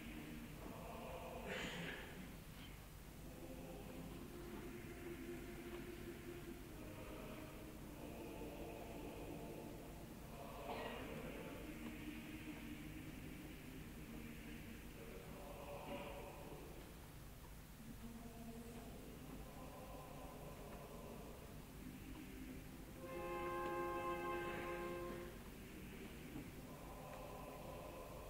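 A woman sings in a strong operatic voice.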